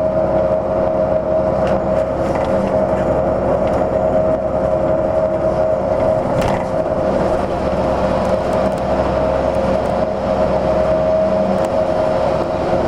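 A train rumbles and hums steadily as it rolls along.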